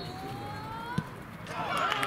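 A football is kicked hard once.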